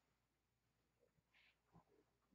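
Footsteps approach across a quiet room.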